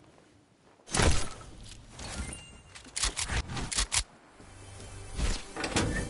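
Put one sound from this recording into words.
Footsteps thump on wooden planks.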